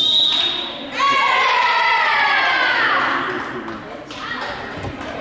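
A group of young women cheer and shout together loudly.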